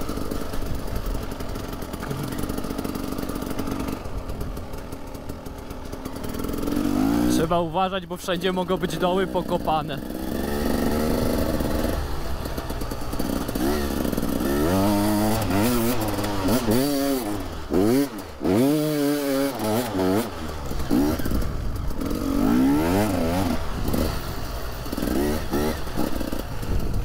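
A dirt bike engine revs up and down as it rides over bumpy ground.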